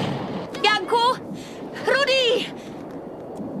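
A young woman shouts excitedly close by.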